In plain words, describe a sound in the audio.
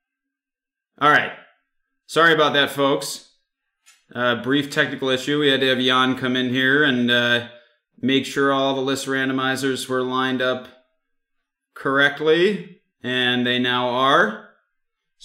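A young man speaks with animation into a microphone, close up.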